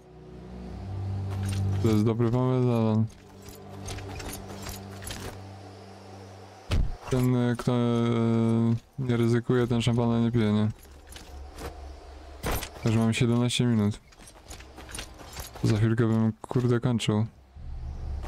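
Footsteps tread over grass and rock.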